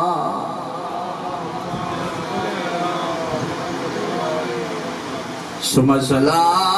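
A man speaks with feeling into a microphone, heard through a loudspeaker.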